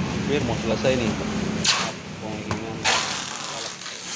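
Packing tape is pulled off a roll with a rasping screech.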